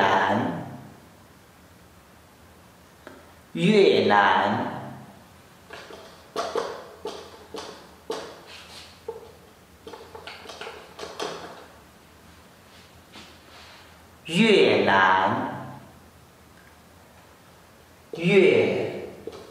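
A young man speaks slowly and clearly, close by.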